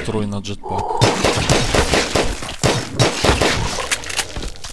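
Rapid gunshots rattle in quick bursts.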